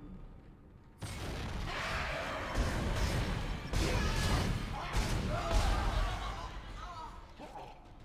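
A gun fires sharp shots in bursts.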